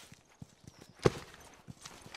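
A sniper rifle fires a single loud, sharp shot.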